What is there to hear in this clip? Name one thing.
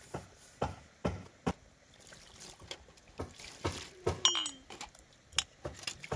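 Water pours from a plastic jug into a basin.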